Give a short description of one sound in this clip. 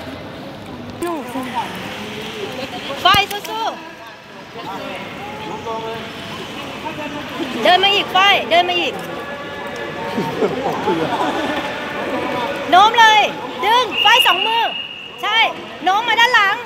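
Young women shout and laugh excitedly nearby.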